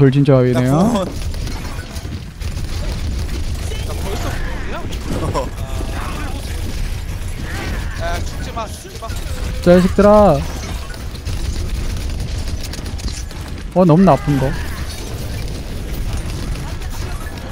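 Gunfire from a video game rattles steadily.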